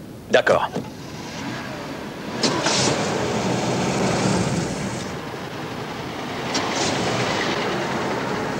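A car engine starts and runs.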